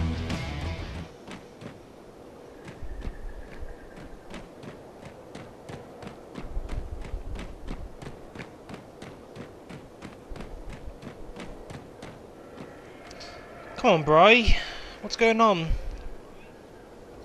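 Footsteps crunch steadily over the ground.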